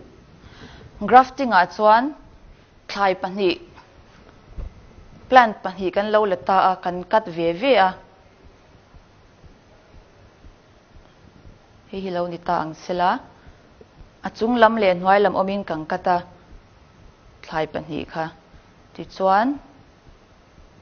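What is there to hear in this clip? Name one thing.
A young woman speaks calmly and clearly, close by, with pauses.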